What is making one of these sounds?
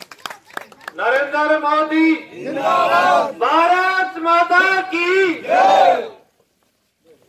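A man speaks loudly into a microphone over a loudspeaker.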